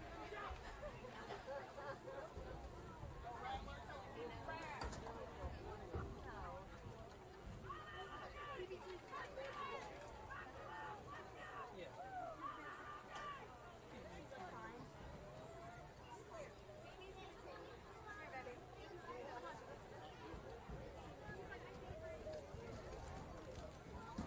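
A crowd of people chatters and calls out across an open outdoor field.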